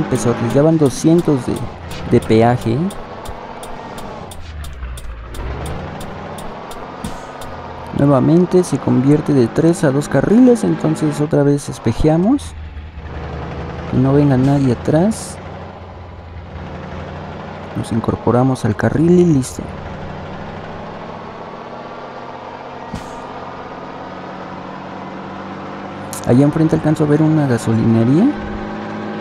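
A truck engine hums steadily and slowly rises in pitch as it speeds up.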